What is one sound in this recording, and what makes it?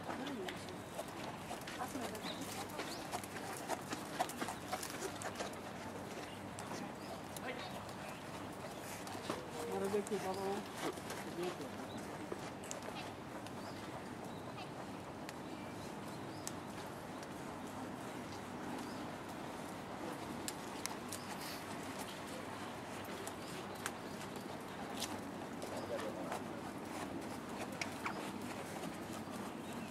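Horse hooves thud softly on sand as horses walk past.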